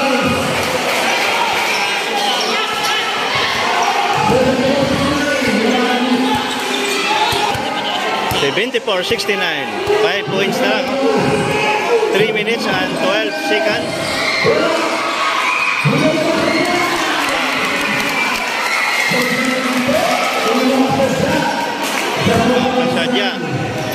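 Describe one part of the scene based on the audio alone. A large crowd chatters and cheers in an echoing hall.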